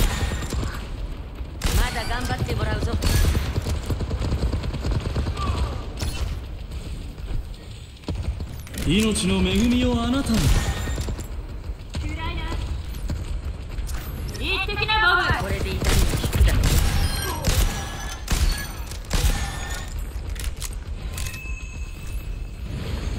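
Gunshots and energy blasts crack repeatedly in a fast game fight.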